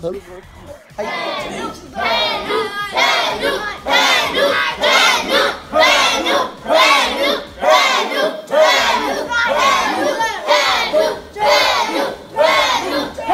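A group of children sing together in a room.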